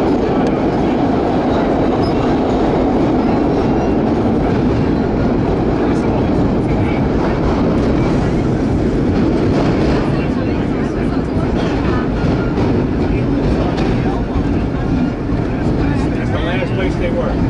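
A subway train rumbles and roars loudly through a tunnel.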